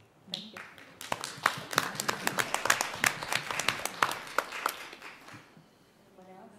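An audience claps in a room, then the clapping fades out.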